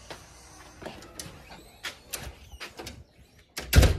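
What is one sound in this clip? A metal gate rattles.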